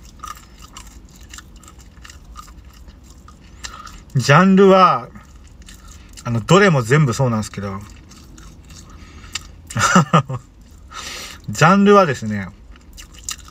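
Paper crinkles as a man handles a snack wrapper.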